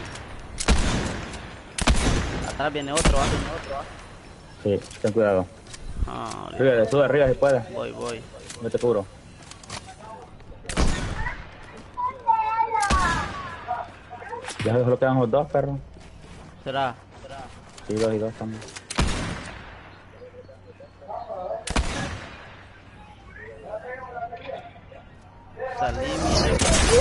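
Shotgun blasts boom in a video game, one at a time.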